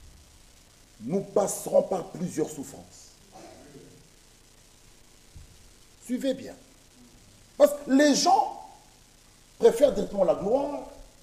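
A man preaches forcefully through a microphone in an echoing room, in loud bursts with pauses.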